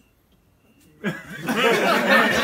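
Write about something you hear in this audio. Men burst into loud laughter and exclaim close by.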